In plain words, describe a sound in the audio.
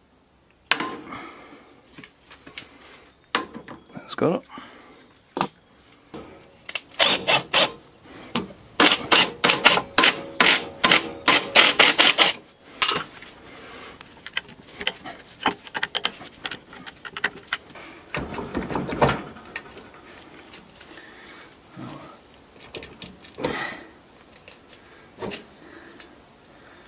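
Metal tools clink against metal parts.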